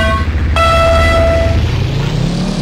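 A start signal beeps with a high steady tone.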